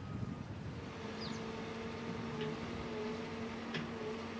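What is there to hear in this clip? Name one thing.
A backhoe's diesel engine idles with a steady low hum.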